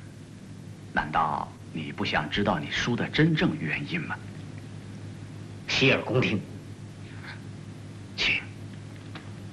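A second young man answers calmly, close by.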